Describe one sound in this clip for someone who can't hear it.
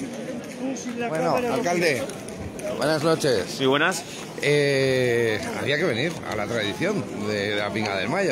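A man talks cheerfully close to the microphone.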